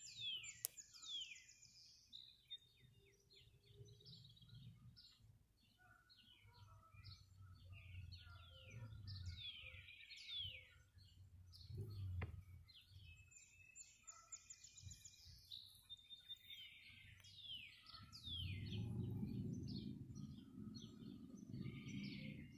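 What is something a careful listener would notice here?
Birds chirp and sing outdoors.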